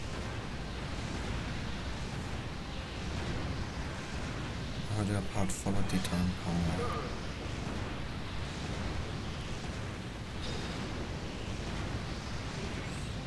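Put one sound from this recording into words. Lava bubbles and rumbles steadily.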